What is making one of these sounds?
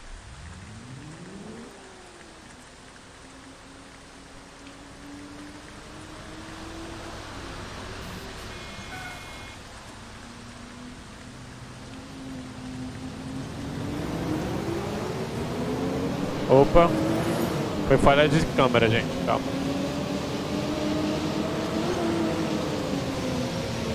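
A bus engine drones steadily, its pitch rising and falling as it drives.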